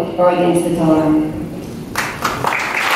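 A woman speaks calmly through a microphone in a large echoing hall.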